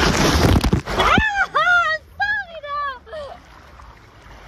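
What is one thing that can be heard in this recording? A young woman laughs and shrieks with delight close by.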